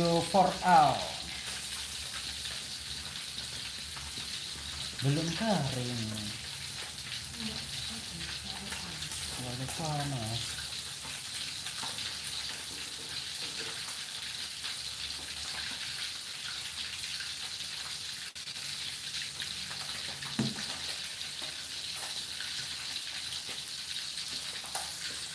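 A metal spatula scrapes and clinks against a metal wok.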